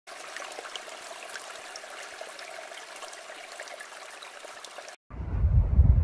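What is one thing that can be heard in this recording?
A shallow stream rushes over rocks.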